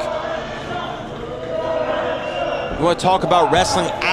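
A body slams heavily onto a wrestling mat with a thud.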